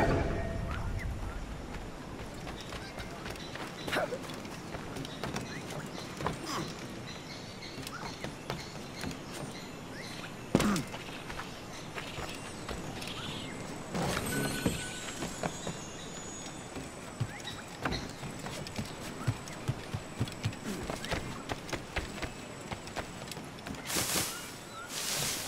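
Footsteps thud on the ground and on wooden boards.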